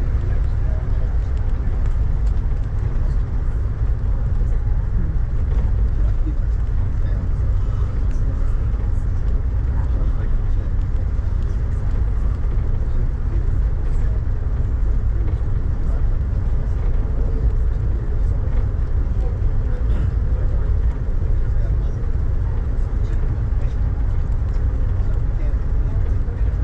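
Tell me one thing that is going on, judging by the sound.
A vehicle rumbles steadily while driving in the rain.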